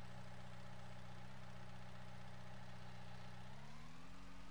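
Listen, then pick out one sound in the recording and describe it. A diesel engine idles steadily.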